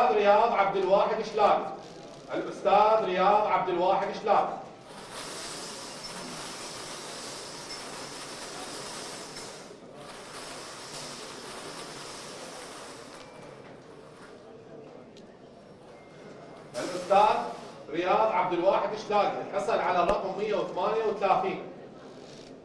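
A man announces through a microphone.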